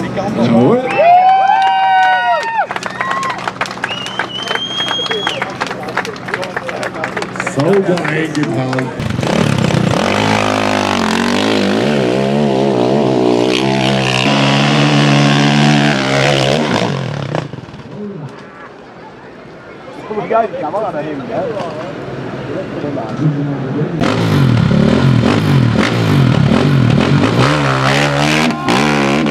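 A motorcycle engine revs loudly in bursts.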